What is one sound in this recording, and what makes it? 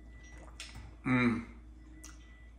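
A middle-aged man hums while tasting food.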